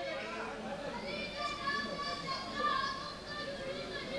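A boy chants loudly through a loudspeaker in a large echoing hall.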